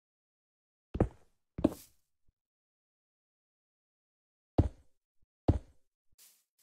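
Blocks thud heavily into place.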